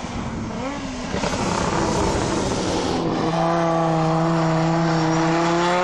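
Tyres screech on tarmac as a car drifts.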